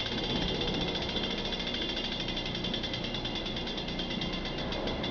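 A bicycle freewheel hub ratchets with a fast buzzing click as a hand spins it.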